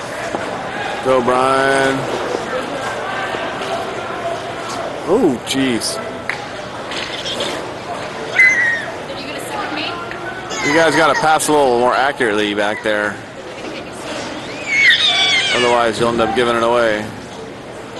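Men shout to each other across a large echoing rink.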